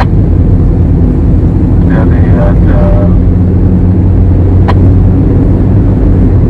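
A car engine hums steadily from inside the car as it drives along a road.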